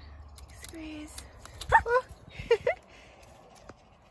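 Garden shears snip through a thick stem.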